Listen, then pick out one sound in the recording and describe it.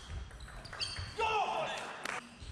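A young man shouts in celebration in a large echoing hall.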